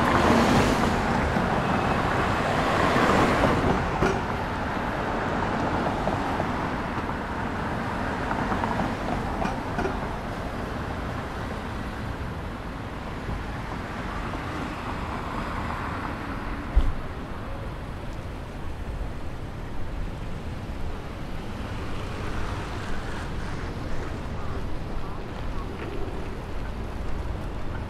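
Cars pass by on a busy city street outdoors.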